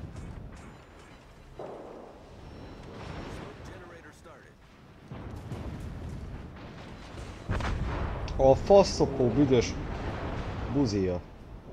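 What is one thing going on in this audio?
Shells explode with loud crashes.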